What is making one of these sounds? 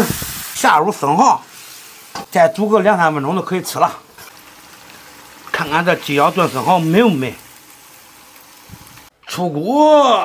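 A stew bubbles and sizzles in a pan.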